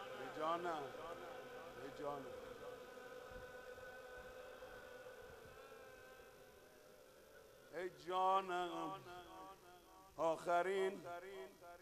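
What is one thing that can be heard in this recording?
A man chants a mournful song loudly through a loudspeaker.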